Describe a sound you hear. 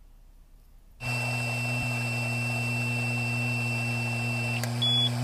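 A man hums steadily while blowing into a handheld device.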